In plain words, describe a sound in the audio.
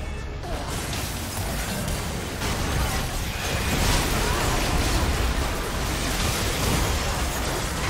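Magic spell effects whoosh and blast rapidly.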